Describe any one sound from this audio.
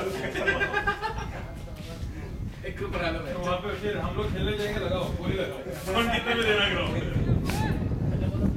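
Men talk outdoors.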